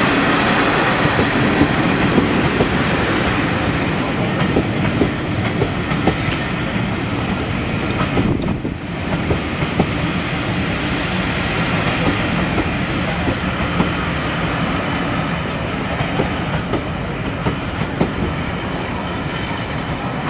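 Train wheels clatter and click over rail joints.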